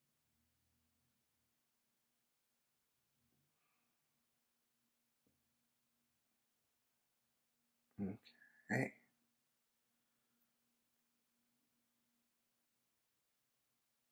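Thin wire strands click and rustle softly as fingers twist them.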